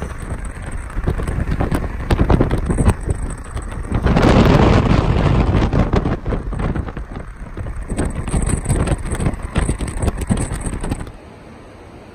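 Wind buffets loudly against a moving boat.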